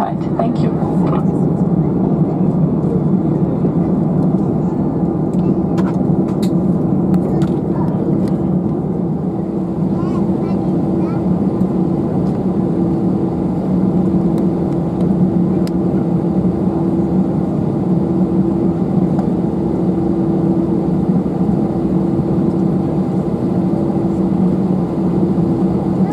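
Wheels rumble over the runway surface.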